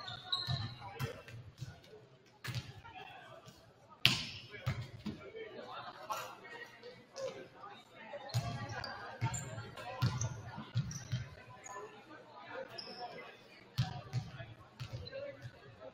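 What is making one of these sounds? A volleyball is struck with sharp slaps in a large echoing gym.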